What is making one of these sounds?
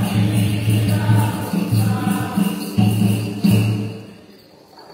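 A group of women sing loudly together in an echoing hall.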